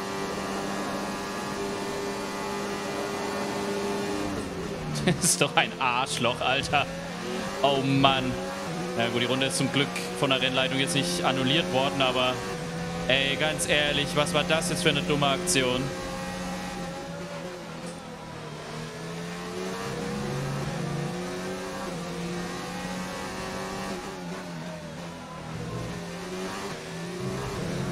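A racing car engine whines at high revs and shifts gears.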